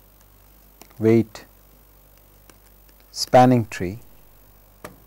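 A man speaks in short bursts close to a microphone.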